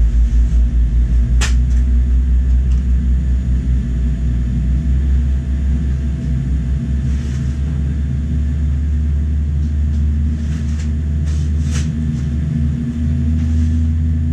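A jet engine hums with a low, steady drone from inside an aircraft cabin.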